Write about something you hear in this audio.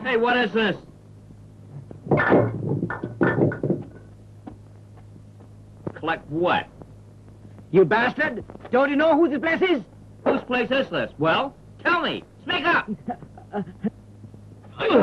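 Men speak close by.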